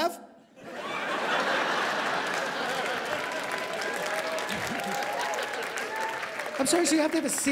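A large audience laughs loudly in an echoing hall.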